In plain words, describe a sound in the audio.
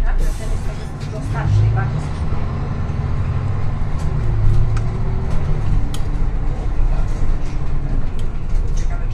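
A bus engine whines, rising and falling in pitch as the bus pulls away and turns.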